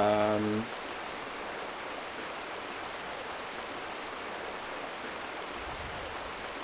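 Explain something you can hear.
Water splashes and ripples steadily.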